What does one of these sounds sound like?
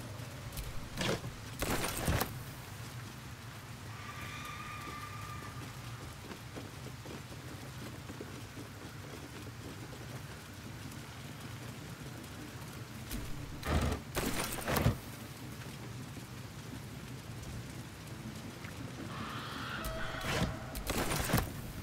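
Items rattle and clatter as they are picked up from crates.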